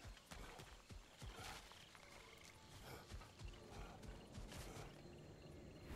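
Heavy footsteps crunch on the forest floor.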